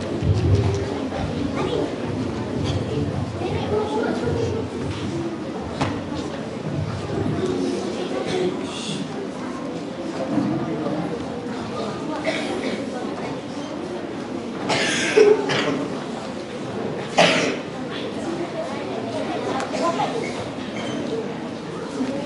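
An audience murmurs and chatters in a large echoing hall.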